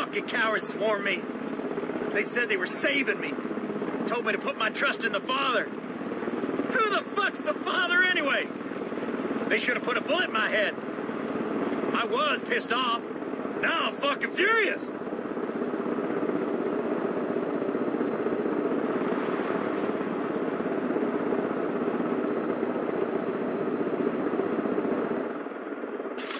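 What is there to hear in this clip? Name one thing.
A helicopter's rotor drones steadily overhead.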